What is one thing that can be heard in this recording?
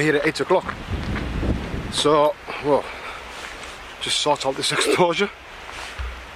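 A man talks close up, with animation.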